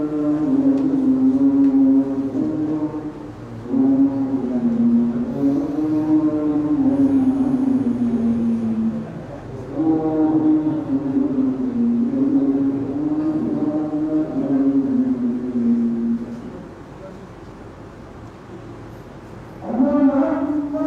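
A young man chants in a long, melodic voice through a microphone, in an echoing room.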